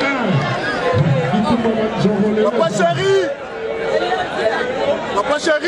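A crowd of spectators shouts and cheers loudly all around.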